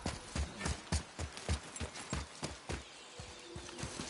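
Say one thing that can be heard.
Footsteps crunch on the ground.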